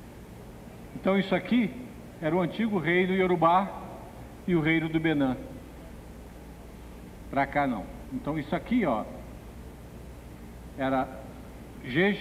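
A man speaks in a lecture style, heard through a microphone.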